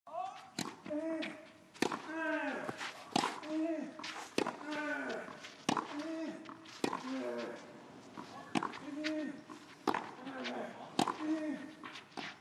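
A young man grunts loudly with effort as he hits the ball.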